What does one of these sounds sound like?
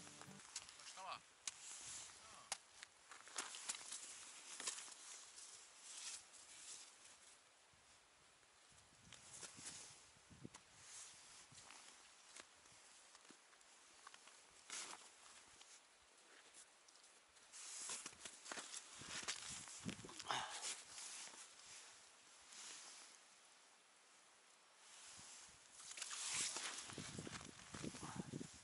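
Wind gusts outdoors, buffeting the microphone.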